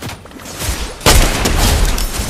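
A rifle fires a shot.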